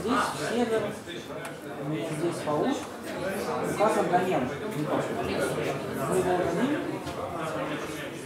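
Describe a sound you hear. A laptop keyboard clicks as keys are typed.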